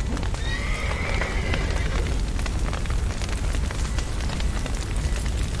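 Fire crackles and roars steadily.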